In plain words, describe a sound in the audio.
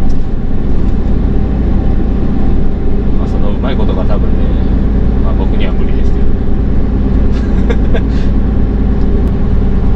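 Road noise rumbles steadily beneath the cab.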